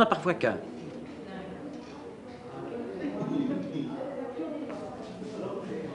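Several adults talk quietly among themselves in the background.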